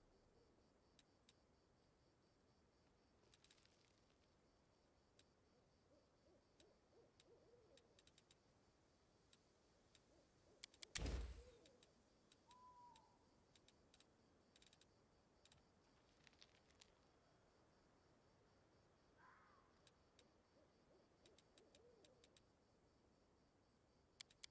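Soft interface clicks sound now and then.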